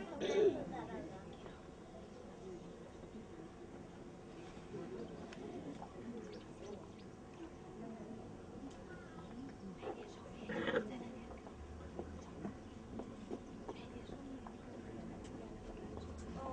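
Children and adults chatter quietly in the background.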